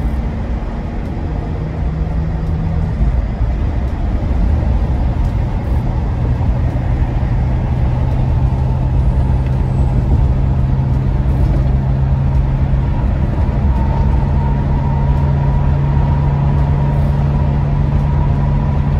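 Tyres roar steadily on a highway.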